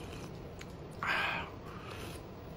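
A man slurps soup loudly, close by.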